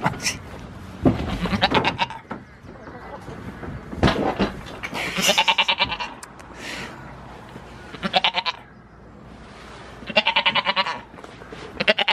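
A goat bleats loudly and close by, several times.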